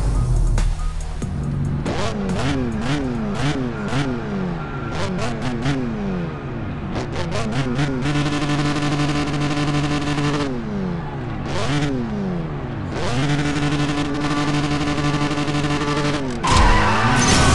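A sports car engine revs up and down repeatedly while idling.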